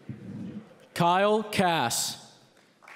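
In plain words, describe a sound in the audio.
A man in the crowd lets out a loud, drawn-out shout.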